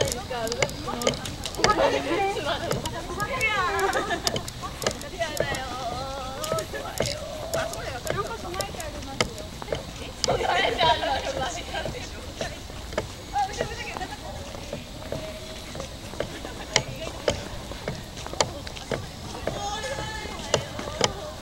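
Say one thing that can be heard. A crowd of people chatters and calls out at a distance outdoors.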